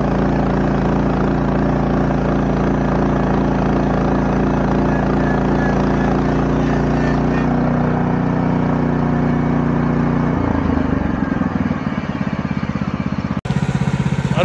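An engine runs steadily nearby, then drops to a lower idle.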